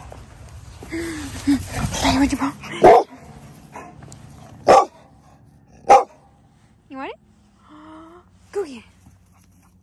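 A dog whines and yelps excitedly close by.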